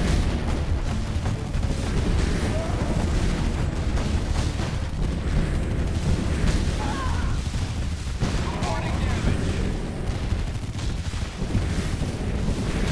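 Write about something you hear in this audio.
Cannons fire in rapid bursts.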